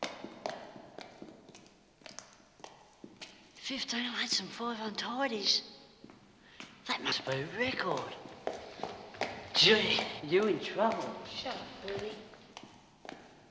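Footsteps tap on a hard floor in an echoing corridor.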